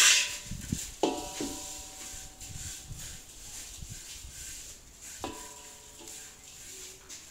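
A metal wok rings briefly when knocked by a spatula.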